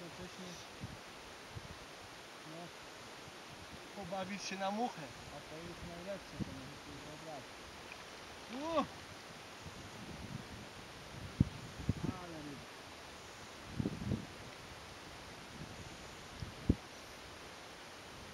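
A fishing line swishes through the air during casts.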